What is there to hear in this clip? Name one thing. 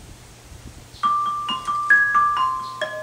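A marimba rings out with mallets striking wooden bars.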